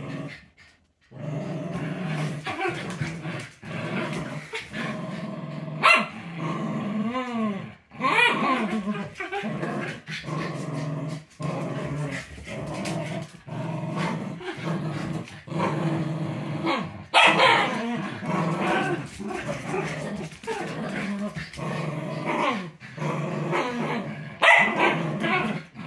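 Dog paws scrabble on a hard floor.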